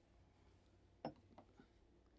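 A latch clicks.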